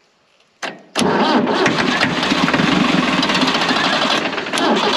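An old tractor engine runs with a loud, rough rumble.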